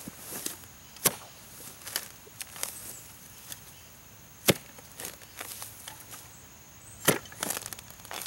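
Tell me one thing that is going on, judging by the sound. A post hole digger thuds into the ground.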